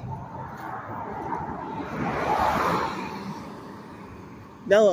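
A car drives past on a nearby road with a rising and fading whoosh.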